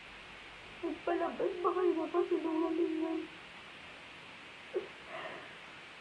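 A young woman speaks tearfully and shakily, close up.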